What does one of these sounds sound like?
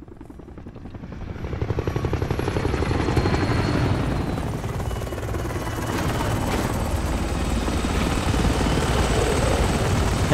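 A helicopter's rotor thumps loudly overhead.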